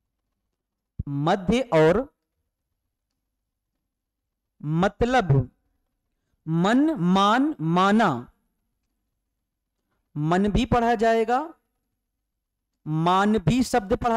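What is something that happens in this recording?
A man speaks clearly and calmly into a close microphone, in short bursts with pauses.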